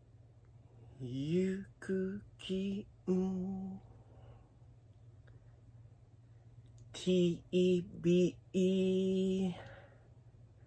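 A young man sings in short, drawn-out, emotional phrases close by.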